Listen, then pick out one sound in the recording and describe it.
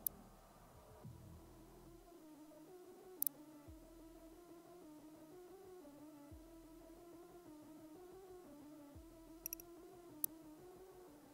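Short electronic clicks sound as menu options are selected.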